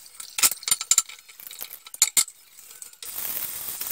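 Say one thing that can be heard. A sponge squeaks and scrubs on a plate.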